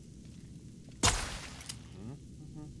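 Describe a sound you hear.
A bowstring snaps as an arrow is loosed.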